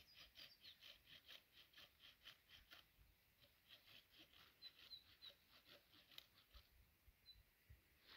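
A stick scrapes and digs into dry, stony soil.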